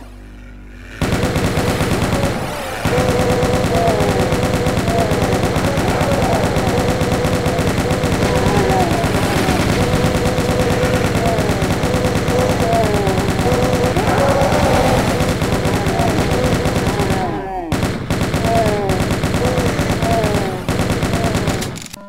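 A heavy machine gun fires in rapid, continuous bursts.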